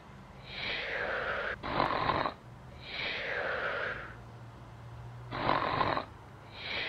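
A dog grumbles and snorts in loud, wheezy breaths.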